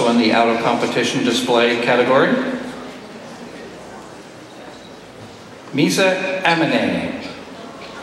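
A man speaks with animation into a microphone, heard through loudspeakers in a large hall.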